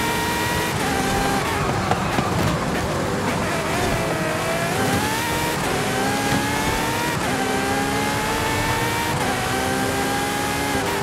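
A sports car engine roars at high revs, rising and dropping as gears shift.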